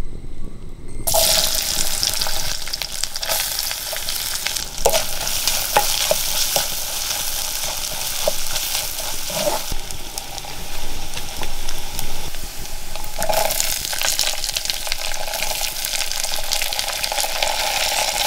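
Chopped pieces drop into hot oil.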